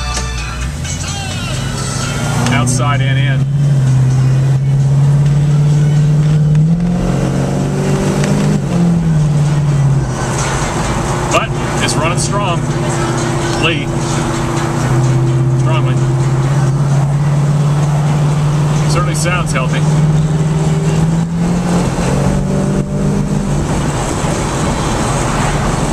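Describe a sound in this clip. A car engine hums steadily and rises and falls in pitch as the car drives.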